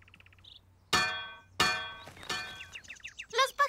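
Metal pot lids clang together loudly and ring out.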